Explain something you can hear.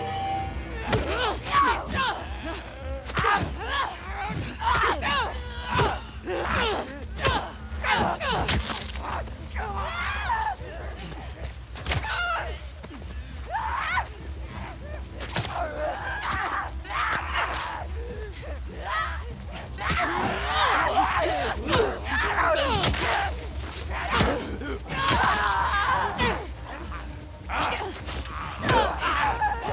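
Monsters shriek and snarl close by.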